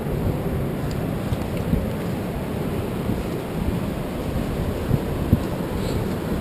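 Bare feet crunch on loose stones.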